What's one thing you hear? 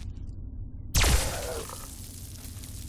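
An energy weapon fires with a sharp crackling burst.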